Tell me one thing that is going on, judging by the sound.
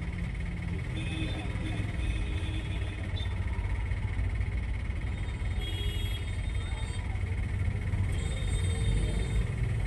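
Vehicle horns honk in the street.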